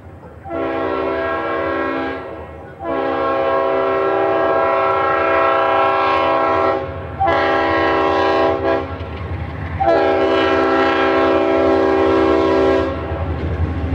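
A locomotive horn blows in long blasts as a train approaches.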